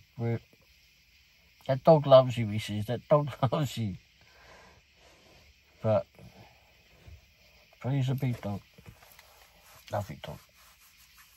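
An older man talks calmly and close by, in short bursts.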